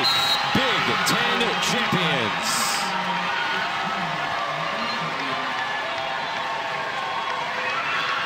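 Young women shout and squeal with joy.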